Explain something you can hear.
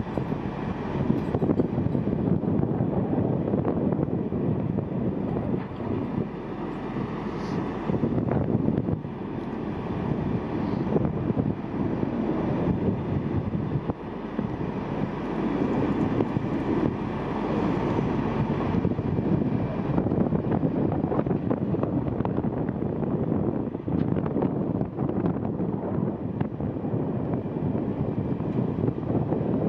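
A heavy truck engine rumbles steadily outdoors.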